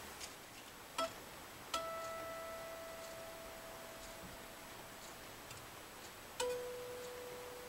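A man plucks single electric guitar strings that ring out and slowly fade.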